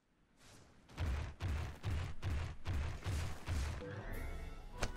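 Heavy footsteps of a large creature thud in a quick, steady rhythm.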